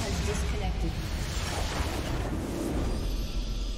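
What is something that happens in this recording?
Magical blasts whoosh and crackle in quick bursts.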